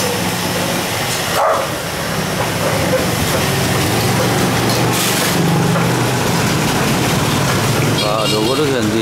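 A power sander whirs loudly against wood.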